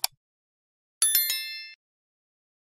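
A bright bell chimes and rings out briefly.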